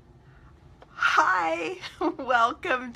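A woman speaks animatedly in a playful, high voice close to a microphone.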